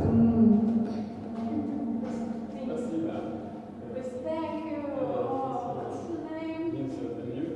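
A man talks quietly nearby.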